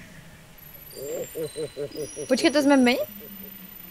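A young woman speaks briefly and calmly into a microphone.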